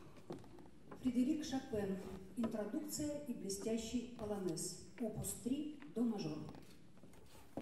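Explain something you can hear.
A cello plays a slow melody.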